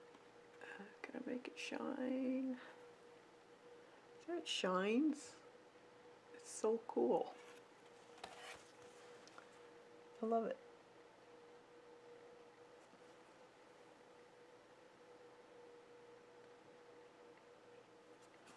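A paintbrush softly brushes across paper.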